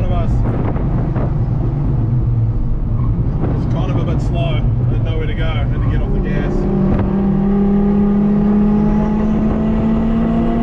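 A car engine drones steadily, heard from inside the car.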